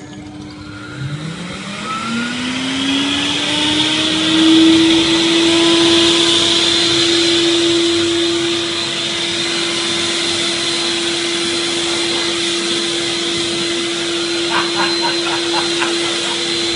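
A water-filter vacuum cleaner motor spins up and then runs with a steady whine.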